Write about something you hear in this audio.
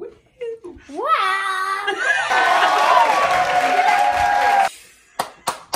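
A woman screams and cheers loudly.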